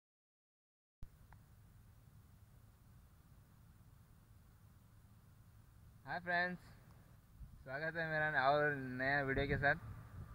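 Wind rumbles softly against the microphone outdoors.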